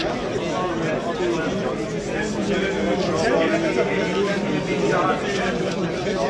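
A crowd of men chatter outdoors, many voices overlapping.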